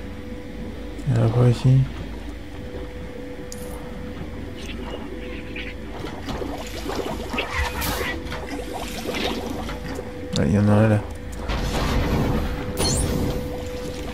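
Bubbles gurgle softly underwater.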